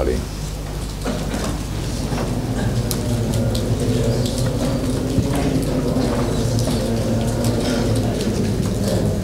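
Many boys recite together in a low murmur.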